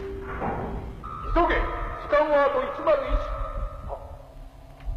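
A man speaks menacingly.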